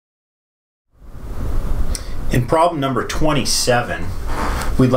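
A man speaks calmly, slightly further off in a room.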